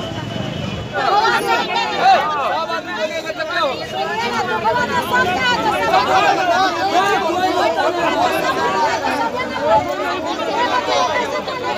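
A crowd of men and women shouts and argues loudly at close range.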